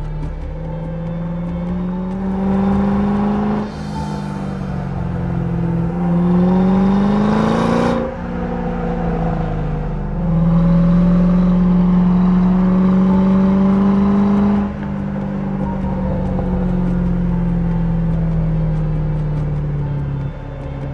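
A sports car engine roars loudly, revving up and easing off through the gears.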